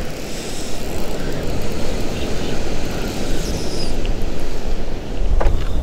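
Waves break and wash against the pier below.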